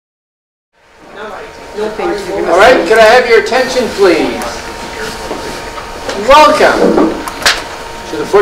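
A middle-aged man speaks calmly to an audience in a large echoing room.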